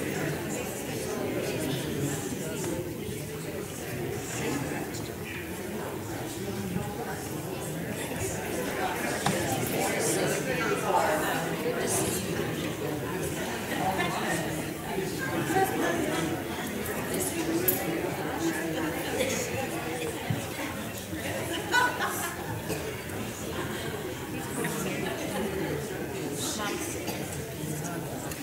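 A congregation sings together in an echoing hall.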